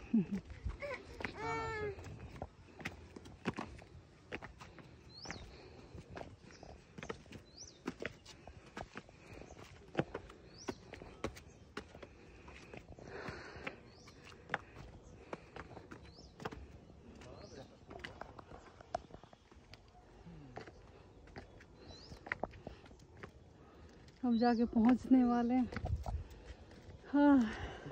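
Footsteps scuff and tap on stone steps.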